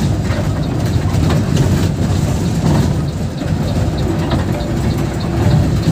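A large vehicle's engine rumbles steadily from inside the cab.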